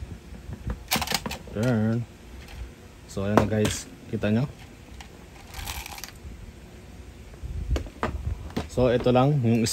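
Hard plastic parts knock and click together.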